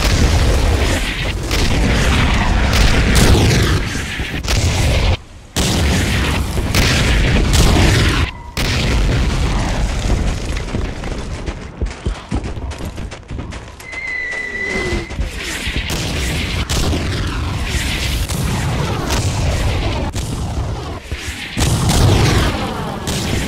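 Explosions burst nearby with deep booms.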